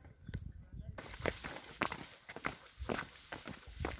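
Footsteps tread on a stone path.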